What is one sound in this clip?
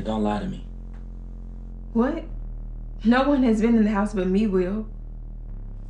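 A young woman speaks tensely, close by.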